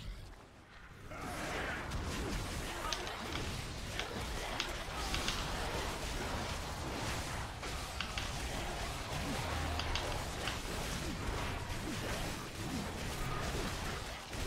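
Spell effects and weapon hits crash and clash in a dense, noisy battle.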